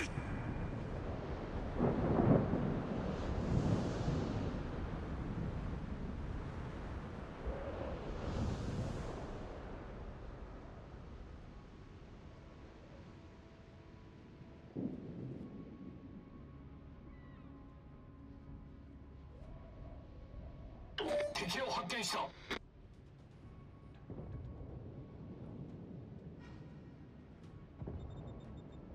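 A ship's engine rumbles low and steadily.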